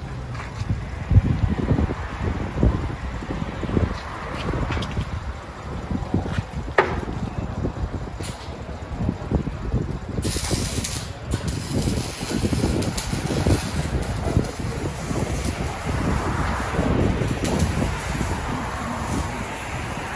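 A car engine revs loudly and drops back, again and again.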